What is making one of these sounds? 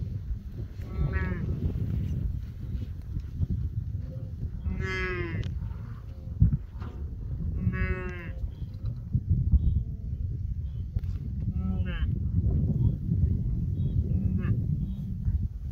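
A large herd of wildebeest gives nasal, honking grunts.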